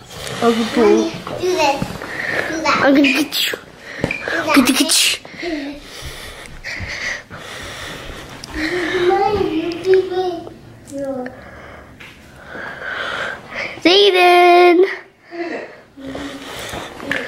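A young child talks and squeals excitedly nearby.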